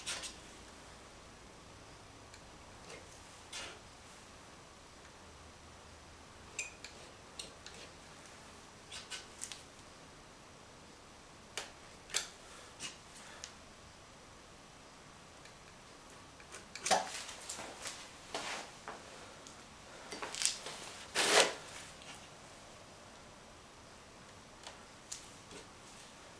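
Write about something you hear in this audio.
A hand scrapes and taps paper.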